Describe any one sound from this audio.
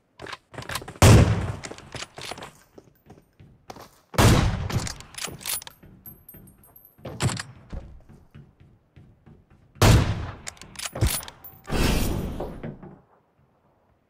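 Gunshots crack loudly, one after another.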